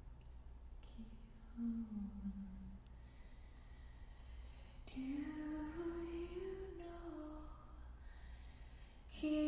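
A woman sings slowly into a microphone, heard over loudspeakers.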